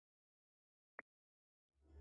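A wooden chest lid shuts with a short knock.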